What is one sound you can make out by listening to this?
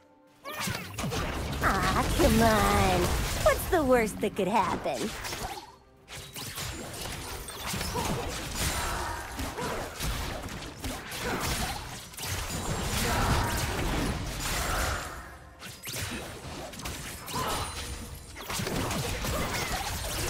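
Magic blasts and weapon strikes crackle and thump in a fast fight.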